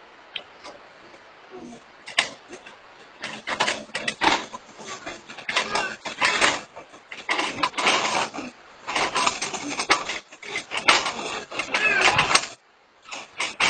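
Dry bamboo strips rustle and clatter as they are woven by hand.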